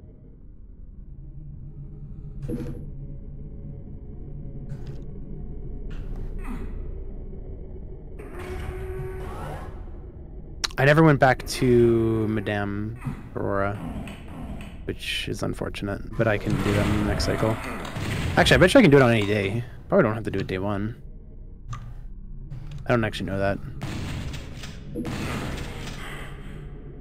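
Video game gunshots and effects play.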